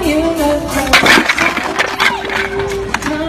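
Wooden blocks clatter as a tall tower topples onto a table.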